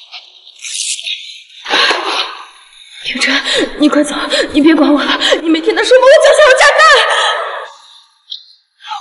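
A young woman sobs and wails loudly.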